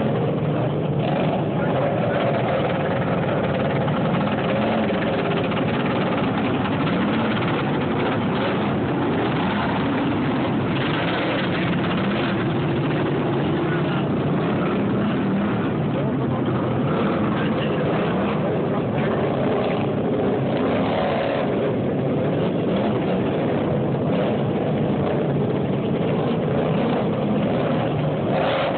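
Many small engines drone and whine, rising and falling in pitch.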